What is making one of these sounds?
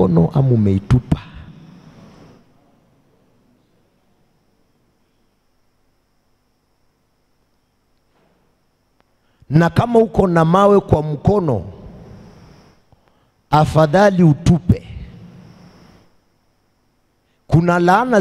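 A man preaches with animation into a microphone, his voice echoing through a large hall, with long pauses between phrases.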